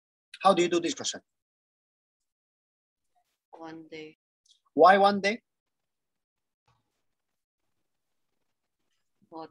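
A woman speaks calmly into a microphone in short phrases.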